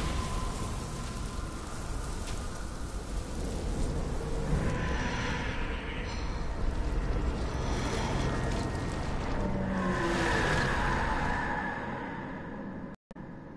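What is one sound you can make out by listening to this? A huge monster growls and shrieks.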